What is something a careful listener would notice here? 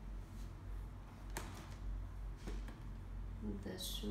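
A shoe rustles and scrapes against tissue paper in a box.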